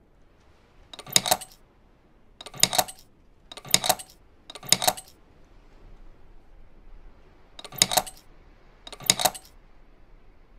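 Small metal latches click and snap one after another.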